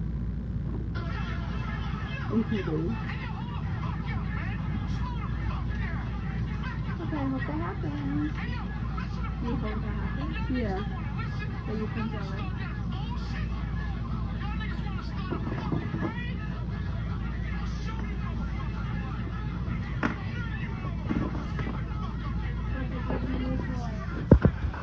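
A young woman talks softly close by.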